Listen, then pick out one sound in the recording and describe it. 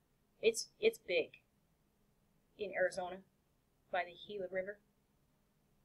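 A woman speaks calmly through a computer microphone, in short phrases with pauses.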